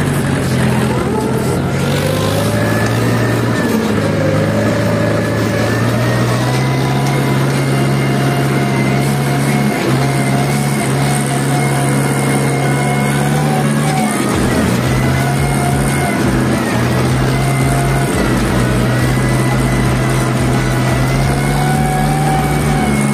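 A tractor engine drones steadily close by.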